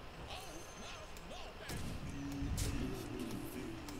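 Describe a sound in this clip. Game sound effects chime and whoosh as a card is played.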